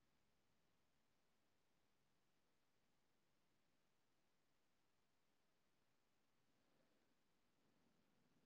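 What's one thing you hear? A brush strokes softly on paper.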